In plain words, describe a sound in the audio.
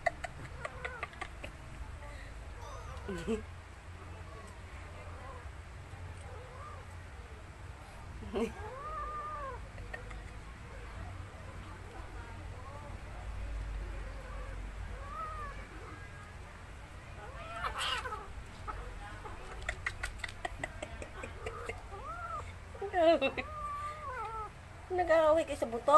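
Two kittens scuffle and paw at each other on a plastic mat.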